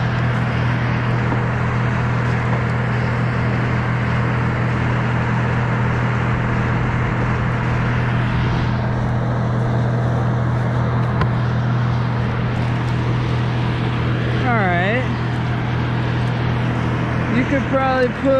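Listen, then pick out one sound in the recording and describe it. A chainsaw engine idles steadily close by.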